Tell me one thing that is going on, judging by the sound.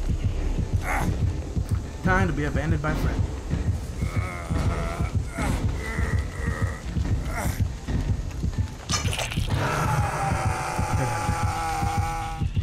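Heavy footsteps thud on the ground.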